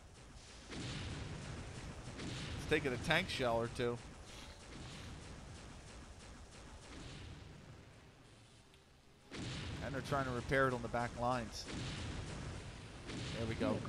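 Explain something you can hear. A gun fires energy shots in quick bursts.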